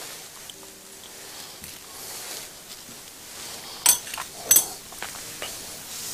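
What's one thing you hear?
Glasses clink as they are set down on a table.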